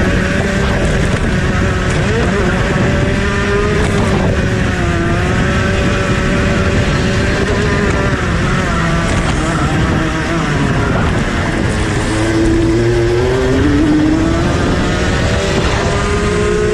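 A kart engine buzzes loudly close by, its pitch rising and falling with the throttle.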